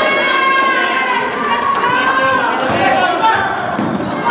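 A basketball thumps as it bounces on the floor.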